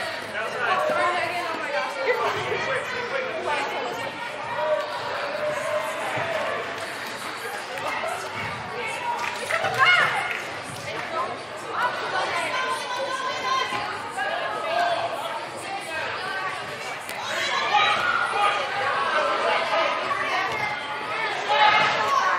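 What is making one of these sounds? Young women shout and call out to each other across an echoing indoor hall.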